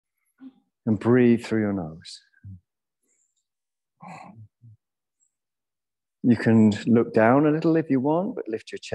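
A man speaks calmly and slowly through a microphone, with long pauses.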